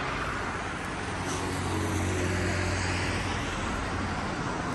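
An engine hums low as a car drives past.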